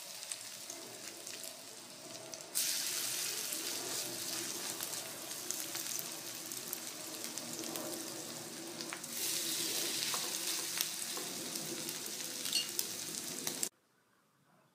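Food sizzles loudly in hot oil in a frying pan.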